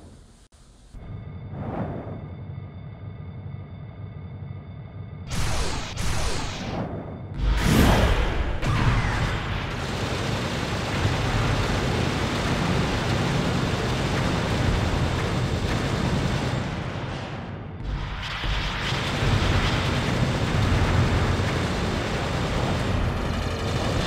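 A flying craft's engine roars steadily.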